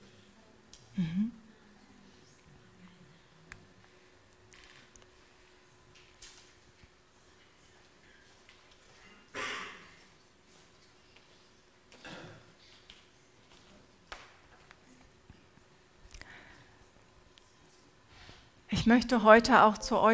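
An older woman speaks slowly through a microphone in a large echoing hall, with long pauses.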